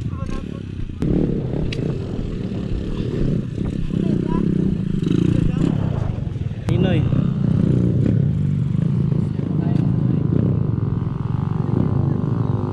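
A dirt bike engine idles and revs close by.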